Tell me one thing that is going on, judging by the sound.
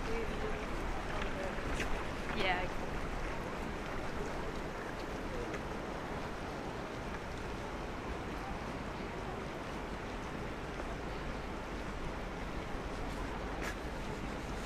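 A shallow stream flows and trickles steadily outdoors.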